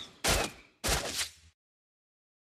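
Video game strike effects clash sharply.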